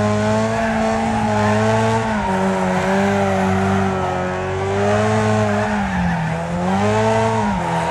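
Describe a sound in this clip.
Tyres skid and scrabble on loose gravel.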